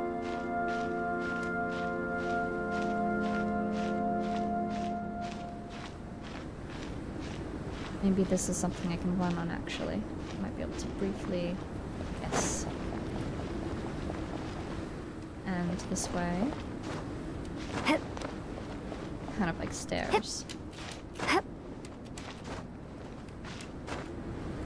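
Soft scraping steps sound as a figure climbs up rock.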